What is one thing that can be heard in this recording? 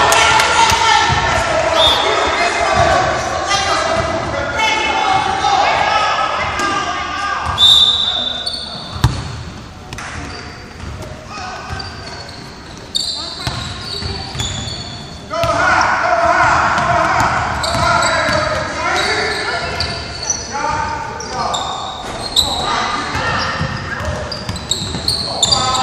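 Young girls call out and shout in an echoing gym.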